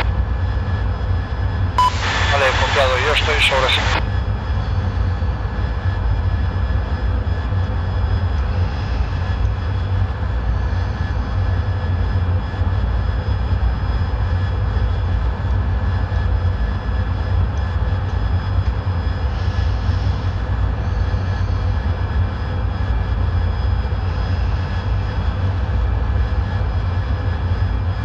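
A jet engine roars steadily with a low rumble.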